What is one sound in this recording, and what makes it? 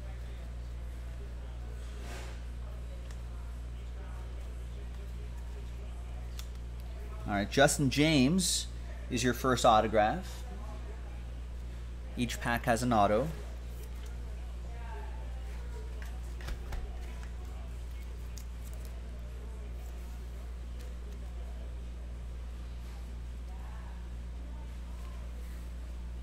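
Trading cards shuffle and slide softly in hands.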